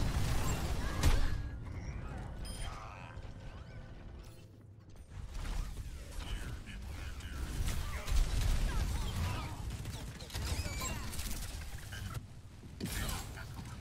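Gunfire and explosions crackle in a fast, busy battle.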